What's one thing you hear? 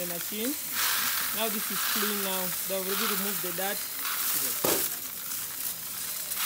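Grain pours in a steady hissing stream into a bucket.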